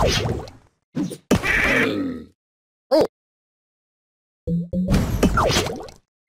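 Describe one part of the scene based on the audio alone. Cartoonish game sound effects pop and chime.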